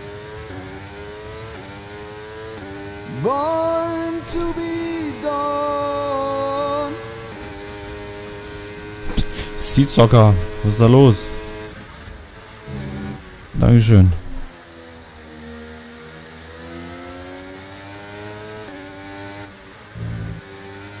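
A racing car engine whines and revs up and down through the gears.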